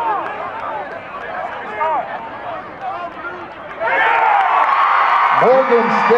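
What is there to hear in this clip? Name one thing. A crowd of spectators shouts and cheers outdoors, growing louder.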